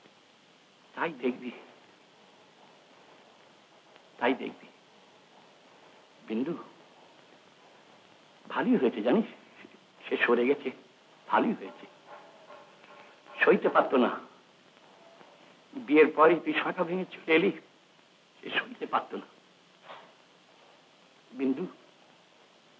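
An elderly man speaks slowly in short, broken phrases with pauses between them.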